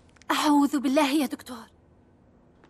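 A young woman speaks anxiously and close by.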